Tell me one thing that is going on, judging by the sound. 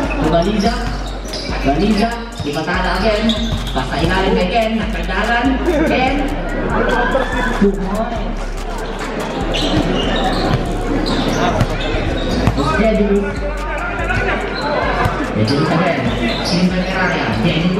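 A large crowd murmurs and cheers outdoors.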